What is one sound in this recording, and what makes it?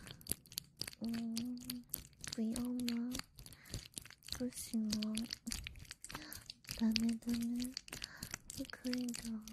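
A young woman hums softly in short, wavering notes close to a microphone.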